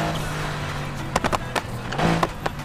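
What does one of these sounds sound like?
A car engine pops and crackles as the driver lets off the throttle.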